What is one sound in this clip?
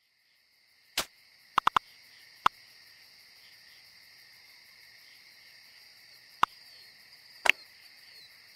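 Game menu buttons click with short, bright blips.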